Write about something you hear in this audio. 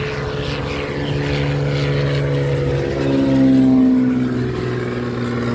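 A small propeller plane's engine drones loudly overhead, its pitch dropping as it passes.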